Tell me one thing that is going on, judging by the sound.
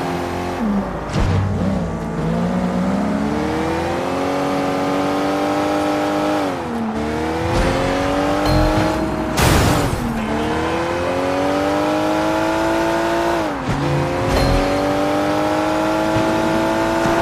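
A car engine revs up and drops as it shifts gears.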